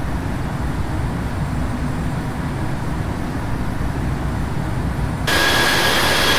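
Jet engines drone low and muffled, as if heard from inside a cockpit.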